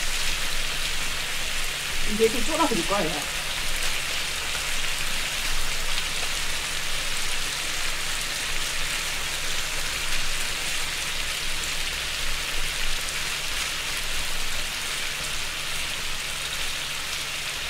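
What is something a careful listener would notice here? Metal tongs clack against a grill plate.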